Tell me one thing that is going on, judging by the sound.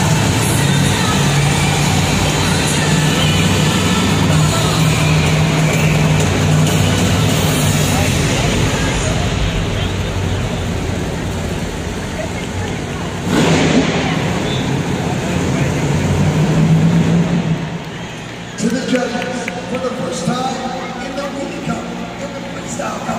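A large crowd murmurs and cheers in a large echoing arena.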